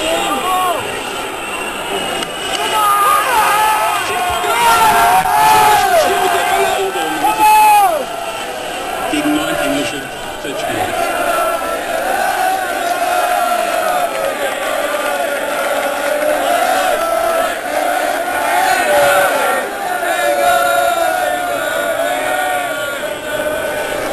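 A crowd of men and women cheers and shouts nearby.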